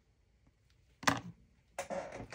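Metal scissors are set down on a table with a clatter.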